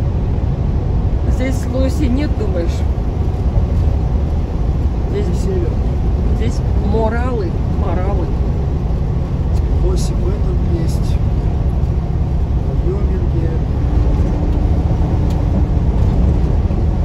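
A vehicle's engine rumbles steadily while driving on a highway.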